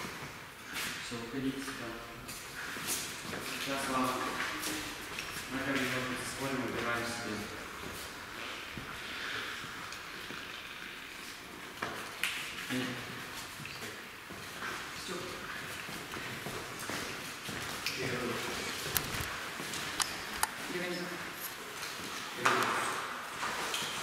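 A man speaks calmly to a group in an echoing hall.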